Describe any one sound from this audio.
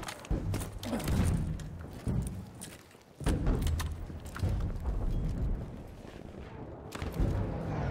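Heavy gunfire booms loudly again and again.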